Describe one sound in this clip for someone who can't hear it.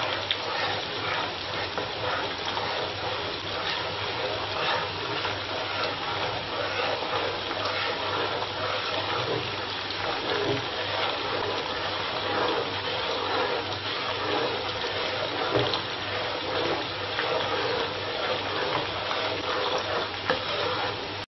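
Food sizzles in hot oil.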